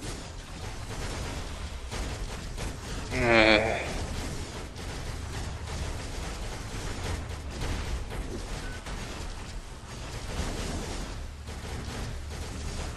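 Magic blasts crackle and whoosh in a busy fight.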